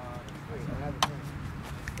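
A bat knocks sharply against a ball.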